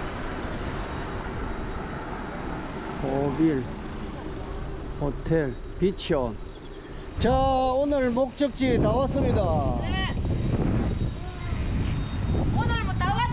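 Bicycle tyres hum on the road.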